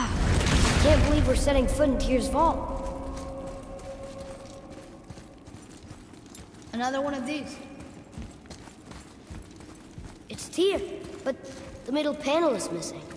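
A young boy speaks, heard nearby.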